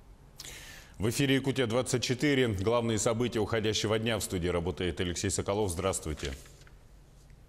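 A young man speaks calmly and clearly into a microphone.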